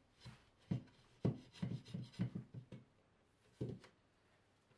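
A plasterboard panel knocks against a wall.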